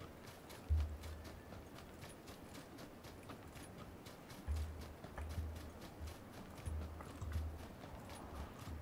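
Quick footsteps run steadily through grass.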